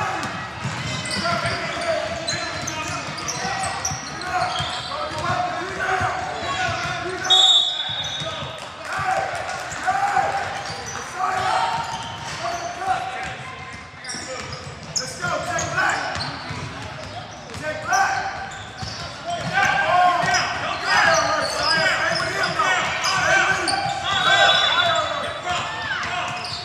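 A crowd of spectators chatters and calls out throughout.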